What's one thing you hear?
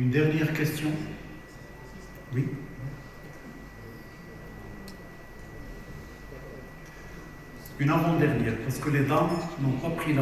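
A man speaks into a microphone to a hall, heard through loudspeakers.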